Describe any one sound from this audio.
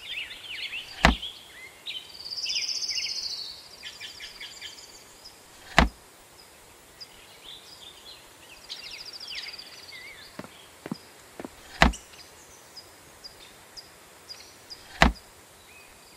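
A cabinet door knocks open and shut.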